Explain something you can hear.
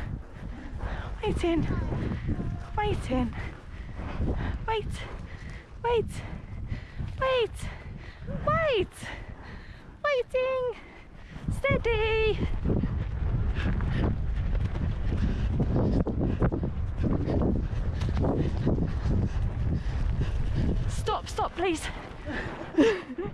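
Horse hooves thud on soft grass at a trot.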